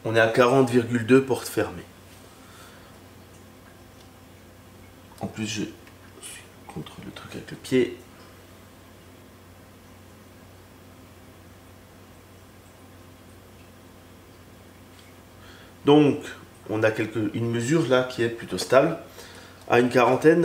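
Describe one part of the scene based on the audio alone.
A man speaks to the listener with animation, close to a microphone, with pauses between phrases.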